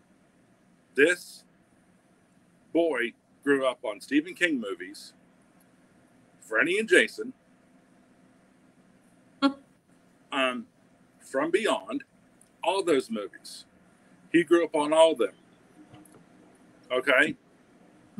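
A man talks with animation over an online call, in short bursts with pauses.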